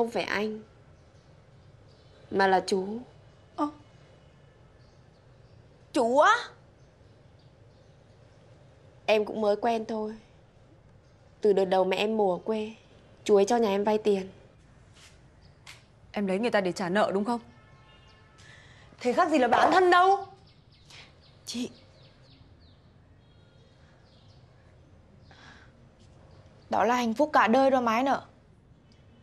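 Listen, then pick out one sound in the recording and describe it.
Several young women talk in turns, some sharply and with emotion.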